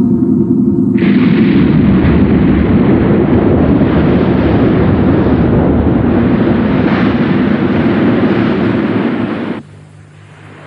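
Water roars and splashes loudly.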